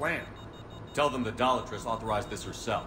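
A man answers in a low, serious voice.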